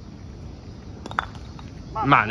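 Wooden pins clatter as they are knocked over.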